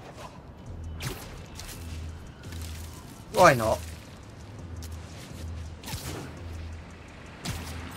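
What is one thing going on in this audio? Quick whooshes and zips sweep past as a figure swings through the air.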